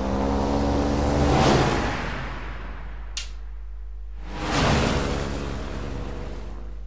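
Water sprays with a rushing whoosh as the airboat passes close.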